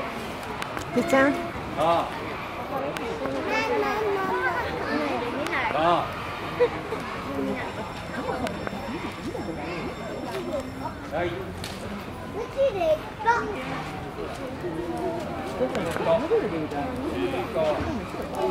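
An elephant makes loud squeaking and trumpeting calls.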